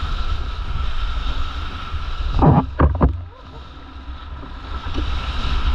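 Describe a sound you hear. Water splashes and sprays against a paddleboard.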